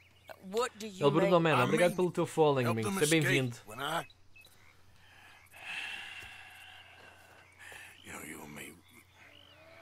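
A man talks calmly into a microphone.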